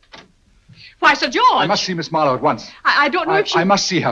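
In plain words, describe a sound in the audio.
A middle-aged woman speaks loudly and with animation.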